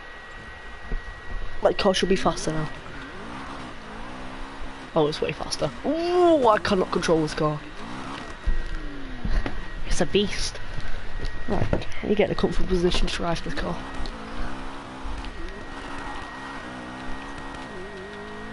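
A car engine hums and revs at speed.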